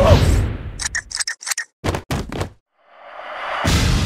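A shell cracks and breaks apart.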